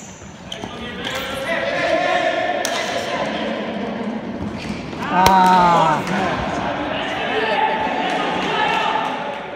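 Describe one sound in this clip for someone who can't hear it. Men shout across a large echoing hall.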